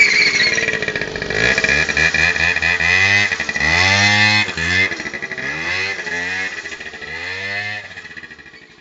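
A small scooter engine revs up and down repeatedly close by.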